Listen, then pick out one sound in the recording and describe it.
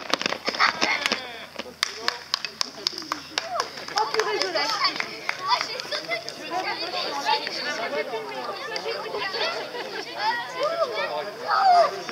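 Children chatter and call out outdoors.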